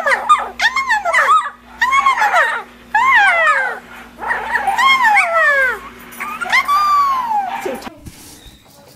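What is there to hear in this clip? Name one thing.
A puppy howls and yowls loudly up close.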